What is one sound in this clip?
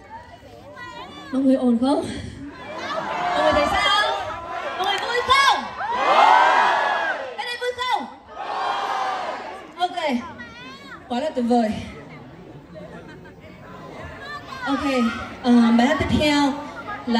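A young woman sings through a microphone over loud loudspeakers in a large hall.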